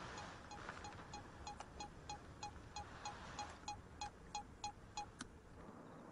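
A small electronic device beeps at a steady pace.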